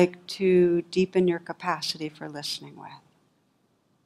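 A woman speaks calmly through a headset microphone.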